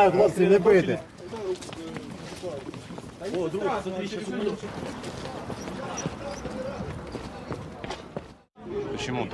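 A crowd of people talks and shouts in the street.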